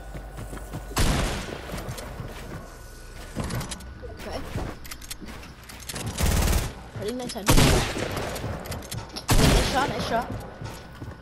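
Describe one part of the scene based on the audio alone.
Gunshots fire in loud bursts.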